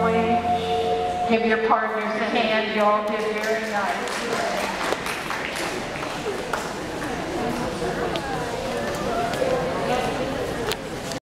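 Shoes shuffle and tap on a hard floor.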